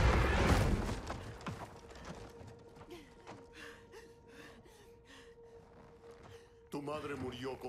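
A young woman gasps and breathes heavily.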